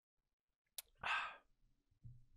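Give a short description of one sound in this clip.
A young man murmurs briefly into a close microphone.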